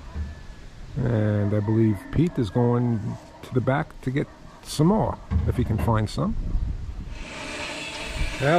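An older man speaks close by, calmly.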